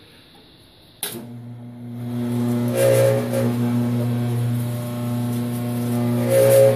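A band saw motor runs with a steady hum.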